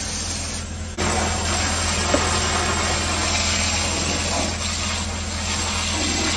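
A fire hose sprays a strong jet of water with a steady hiss.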